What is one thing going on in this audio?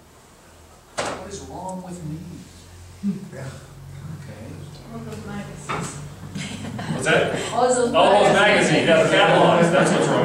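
An elderly man talks with animation nearby.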